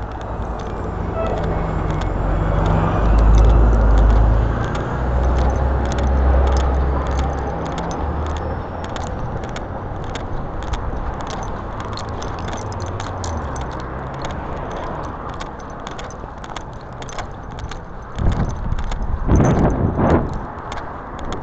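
Wind rushes and buffets against the microphone outdoors.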